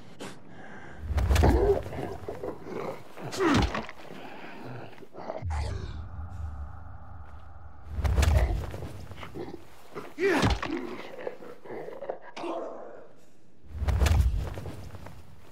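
Heavy blows thud against a body in quick bursts.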